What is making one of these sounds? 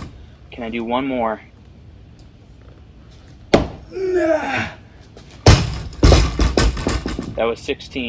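A man grunts loudly with effort, close by.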